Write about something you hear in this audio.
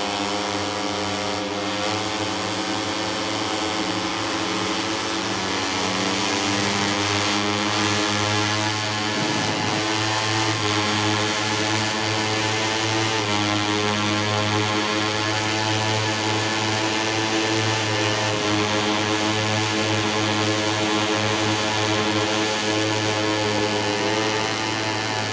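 A motorcycle engine roars loudly and steadily, rising and falling in pitch as it shifts gears.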